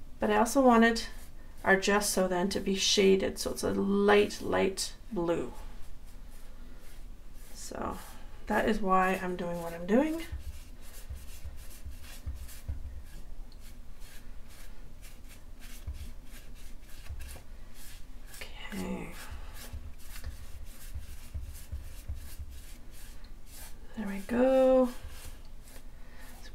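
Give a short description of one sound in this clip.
A sponge dabs softly on paper.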